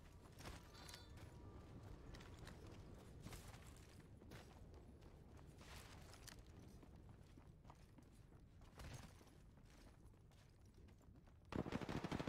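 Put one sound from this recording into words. Footsteps run over ground.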